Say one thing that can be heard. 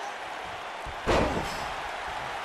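A body slams onto a wrestling mat with a loud thud.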